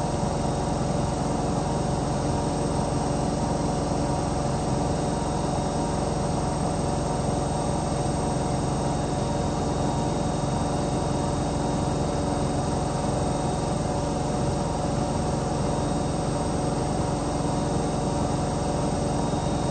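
Water sloshes inside a washing machine.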